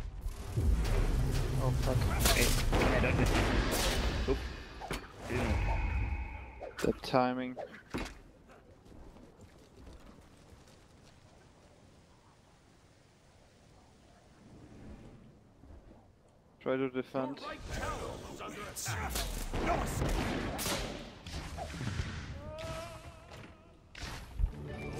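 Game sound effects whoosh and crackle during a fight.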